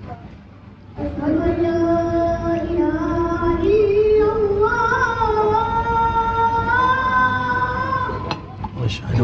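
A young boy chants a long, drawn-out melodic call through a microphone and loudspeaker.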